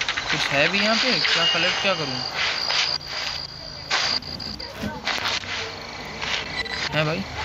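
Light footsteps patter quickly over grass.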